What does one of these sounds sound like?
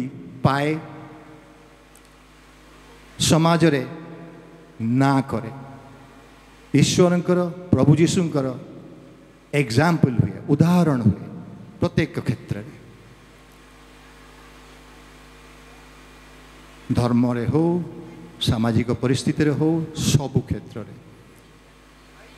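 An older man sings in phrases into a microphone, heard through loudspeakers in an echoing hall.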